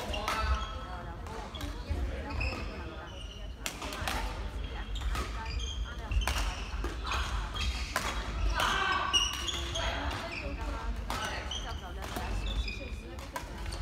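Sports shoes squeak sharply on a hard floor.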